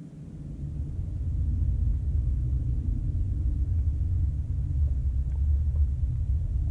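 Wind blows steadily across open ground and rumbles against the microphone.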